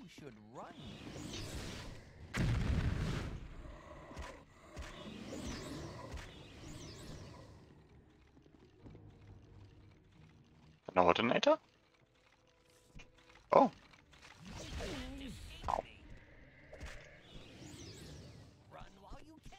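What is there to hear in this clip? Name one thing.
A magic spell crackles and shimmers.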